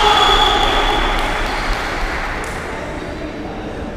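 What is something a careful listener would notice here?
A ball thumps off a foot.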